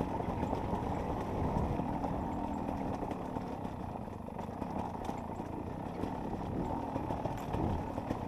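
A dirt bike engine revs and roars close by.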